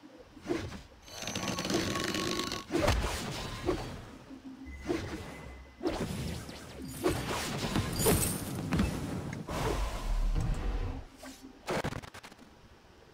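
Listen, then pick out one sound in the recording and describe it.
Fiery magical blasts and impacts burst in quick succession during a fight.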